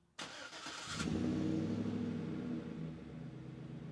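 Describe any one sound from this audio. A truck engine roars to life and revs up, then settles.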